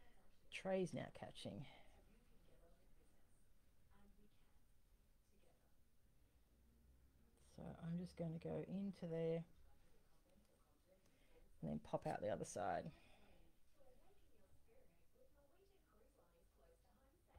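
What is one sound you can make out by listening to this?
Small metal beads click softly between fingers.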